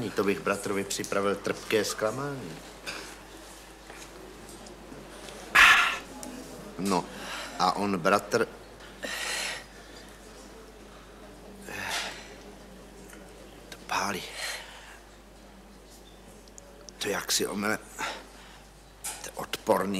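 A middle-aged man speaks calmly and close by.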